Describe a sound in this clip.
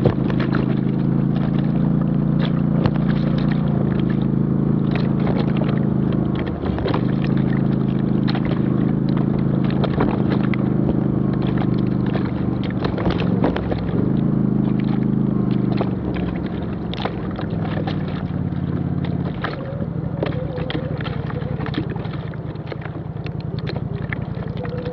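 Tyres crunch and bump over stones and dirt.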